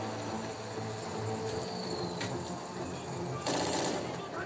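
A vehicle engine idles with a low rumble.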